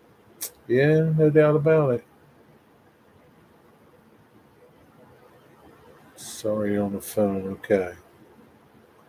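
An older man speaks calmly and close to a microphone, in short bursts with pauses.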